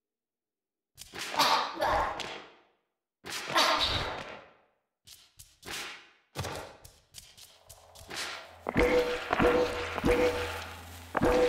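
Shimmering, whooshing game sound effects play in short bursts.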